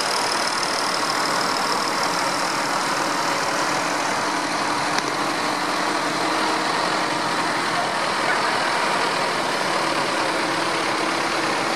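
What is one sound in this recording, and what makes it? Heavy tyres splash and hiss through wet ground.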